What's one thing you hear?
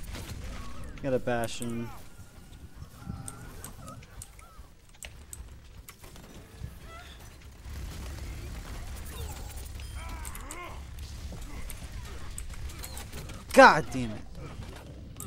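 A young man speaks excitedly into a close microphone.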